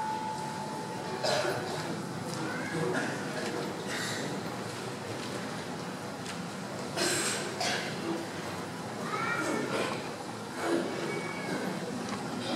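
A crowd of adults chatters and murmurs in a large echoing hall.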